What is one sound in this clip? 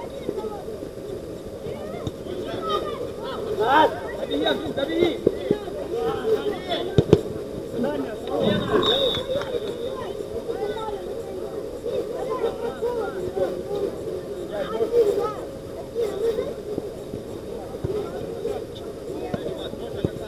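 Men shout and call out to each other across an outdoor pitch.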